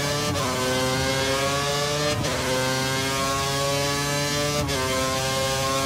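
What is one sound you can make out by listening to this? A racing car engine screams at high revs, climbing in pitch and dropping briefly at each gear change.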